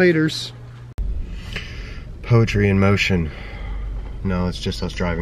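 A car engine hums low inside a vehicle.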